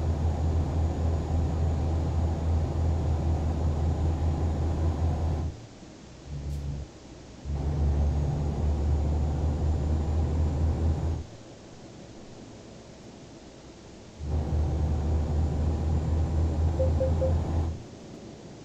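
A truck engine rumbles in a low, steady drone that cuts in and out.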